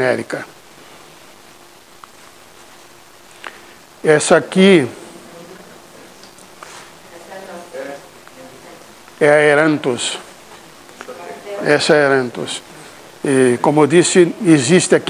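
An elderly man speaks calmly in a large echoing room.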